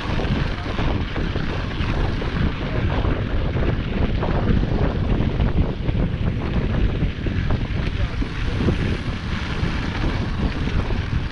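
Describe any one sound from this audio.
Bicycle tyres crunch over snow.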